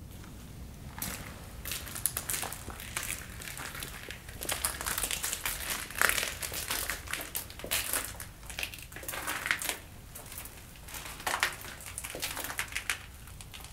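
Footsteps crunch on gritty debris underfoot.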